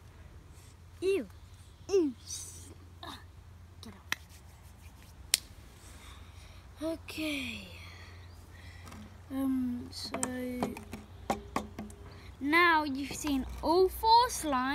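A young boy speaks close by with animation.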